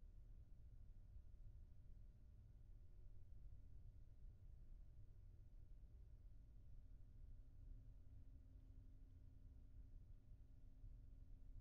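A grand piano plays sustained notes.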